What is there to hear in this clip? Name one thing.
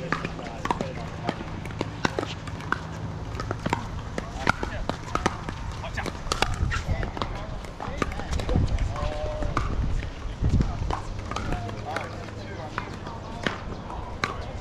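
Paddles pop sharply against plastic balls over and over on nearby courts.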